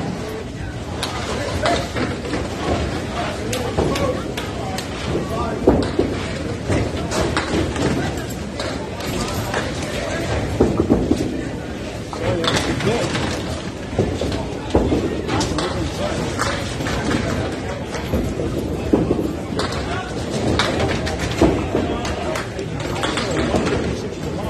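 Bowling balls roll down wooden lanes with a low rumble.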